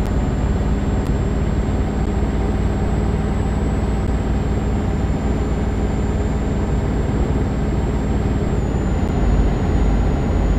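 A truck engine hums steadily as the truck drives along a road.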